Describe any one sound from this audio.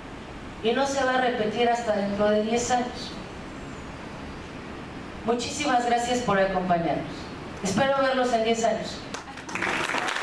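A woman speaks through a loudspeaker in a large echoing hall.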